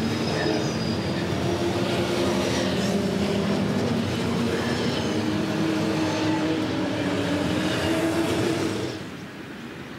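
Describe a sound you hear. Racing car engines rumble and roar as they pass close by.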